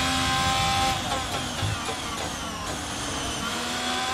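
A racing car engine drops in pitch as it shifts down while braking.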